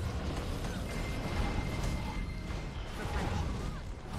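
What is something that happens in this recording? Flames burst and roar around a ring.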